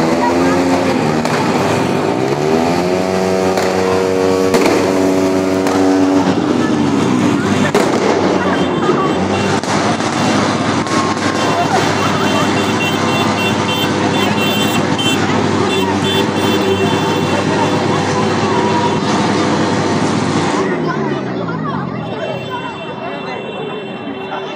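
A siren wails nearby, rising and falling.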